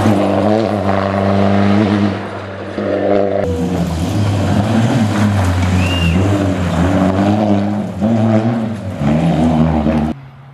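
A rally car engine revs hard as the car accelerates.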